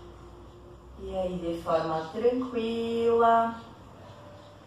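A woman vocalizes loudly and briefly close by.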